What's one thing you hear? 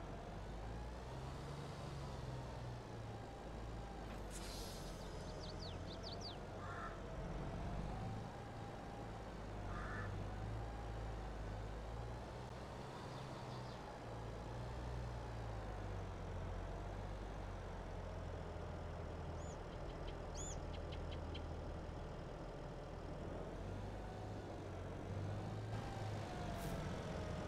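A tractor engine hums steadily with a wavering drone.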